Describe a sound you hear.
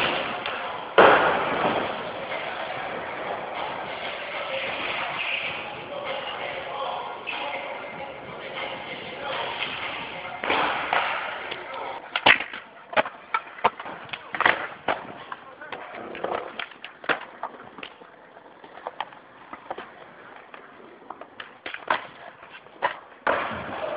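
A skateboard deck slams down onto the ground.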